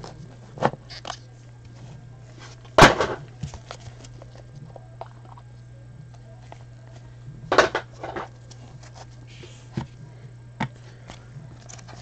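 A cardboard box scrapes and taps on a table.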